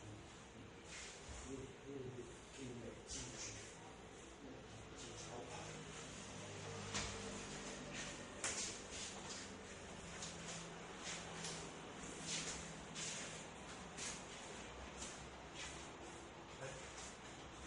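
Hands slap and thud against bodies in quick bursts.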